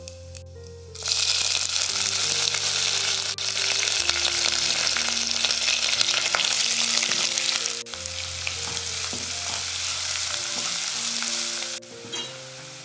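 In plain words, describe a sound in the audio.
Hot oil sizzles loudly in a pan.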